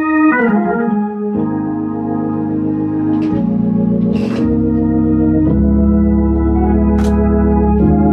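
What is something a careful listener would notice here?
An organ plays sustained chords.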